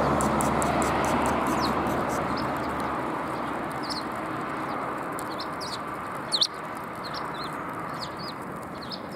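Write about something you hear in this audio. Sparrows peck and scratch at grain on the ground.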